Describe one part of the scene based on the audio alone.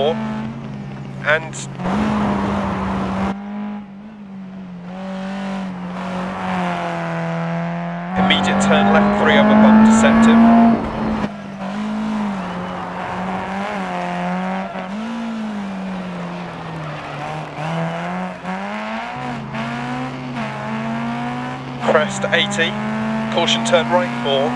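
A rally car engine roars and revs up and down as the car speeds along.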